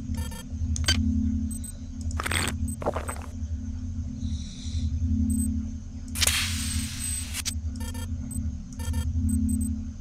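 Low, pulsing electronic music plays steadily.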